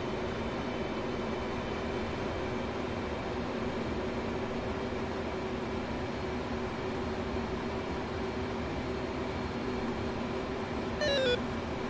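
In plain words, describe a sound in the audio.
A jet engine hums and roars steadily, heard from inside a cockpit.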